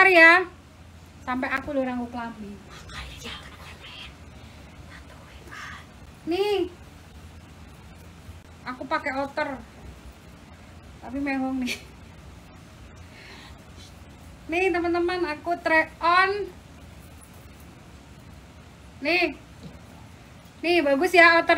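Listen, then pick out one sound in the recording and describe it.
A young woman talks close by with animation, in short bursts.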